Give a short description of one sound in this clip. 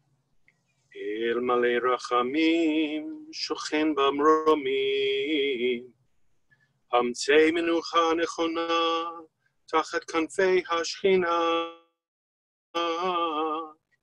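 A man chants in a steady singing voice through a microphone.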